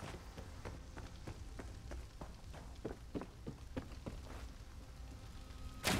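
Footsteps thud quickly across wooden boards.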